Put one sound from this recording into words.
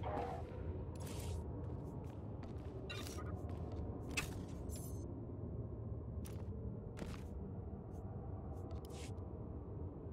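Soft interface clicks and chimes sound as menus open and close.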